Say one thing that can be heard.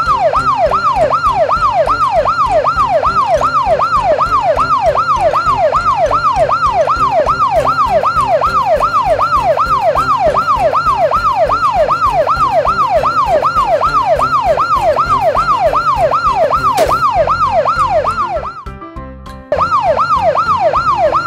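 A police siren wails rapidly up and down, loud and steady.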